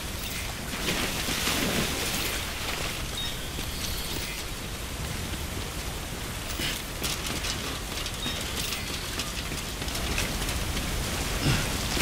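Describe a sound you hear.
Water rushes and splashes steadily around wading legs.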